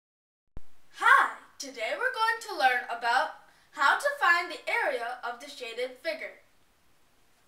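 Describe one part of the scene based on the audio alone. A boy speaks clearly and calmly, close by.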